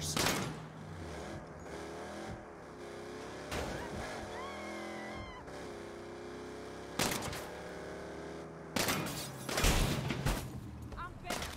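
A car engine roars as a car speeds along.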